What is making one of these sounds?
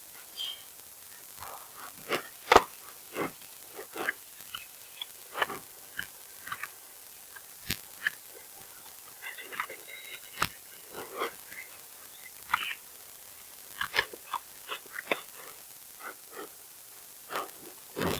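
Footsteps thud on wooden boards and stairs.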